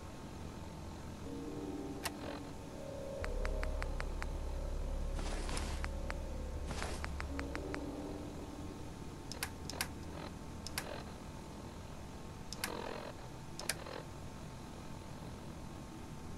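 Short electronic clicks tick as a menu is scrolled.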